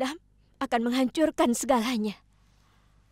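A young woman speaks with alarm, close by.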